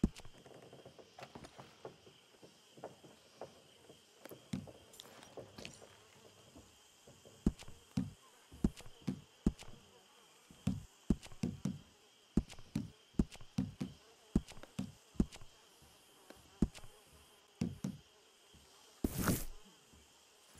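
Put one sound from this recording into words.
A game menu ticks softly as the selection moves from item to item.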